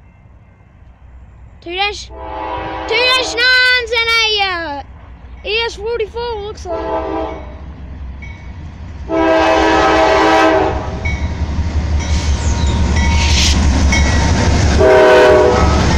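A heavy diesel locomotive rumbles and roars as it approaches and passes close by.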